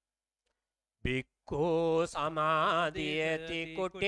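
A man chants in a deep, steady voice through a microphone.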